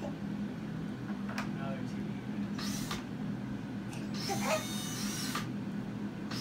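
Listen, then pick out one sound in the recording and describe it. A young child laughs and squeals happily nearby.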